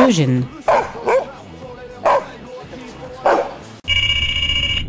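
A dog barks sharply several times.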